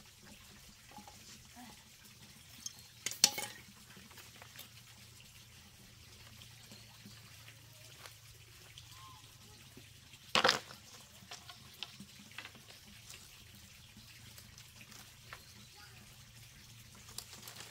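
Bamboo strips clatter and knock as they are gathered from a pile.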